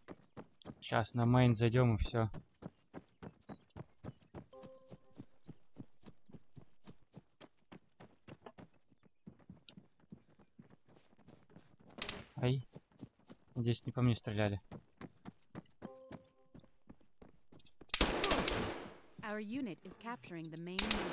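Quick footsteps run over hard ground.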